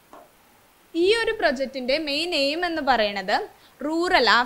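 A young woman speaks clearly and with animation into a close microphone.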